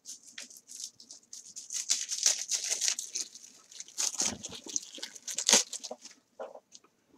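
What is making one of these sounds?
A plastic wrapper crinkles and rustles close by.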